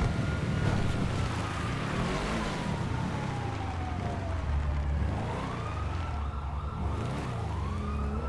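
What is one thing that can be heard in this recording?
A car engine revs as the car drives along.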